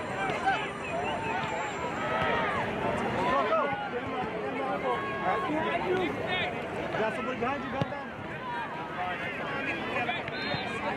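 Many young voices shout and call out across an open field.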